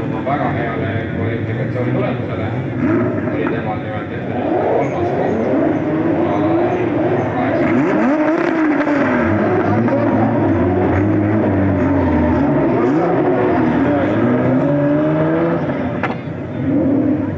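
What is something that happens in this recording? Car engines roar and rev hard as they drift.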